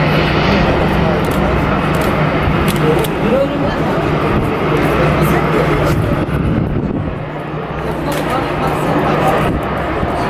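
A jet airliner's engines whine and rumble steadily as it taxis close by.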